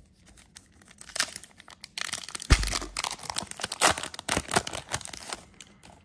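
Foil packs and trading cards rustle and crinkle between fingers, close by.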